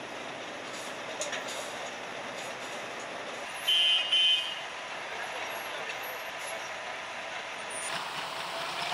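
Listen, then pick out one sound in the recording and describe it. A truck engine rumbles as the truck drives down a metal ramp.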